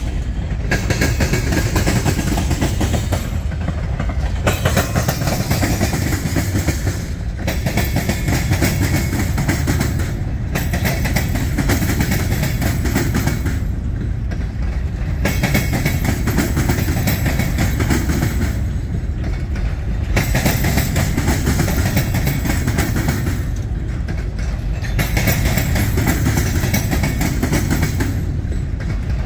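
A long freight train rumbles past close by.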